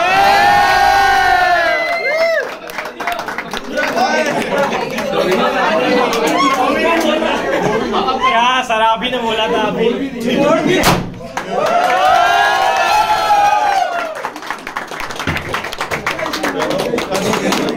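A group of young men clap their hands.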